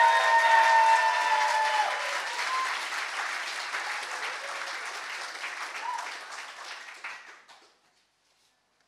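A crowd applauds and cheers in a large echoing hall, then fades out.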